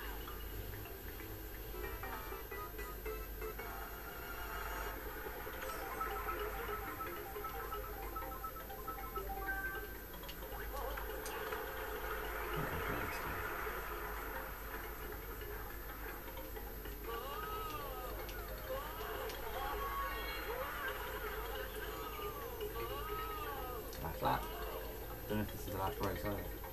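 Video game racing music and kart engine sounds play through a television speaker, heard from a distance in a room.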